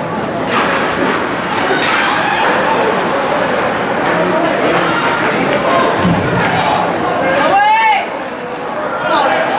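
Spectators chatter and shout in an echoing rink.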